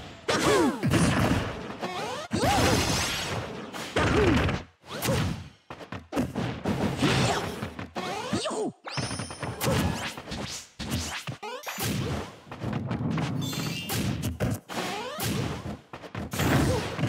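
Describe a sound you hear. Whooshing effects swish with each attack.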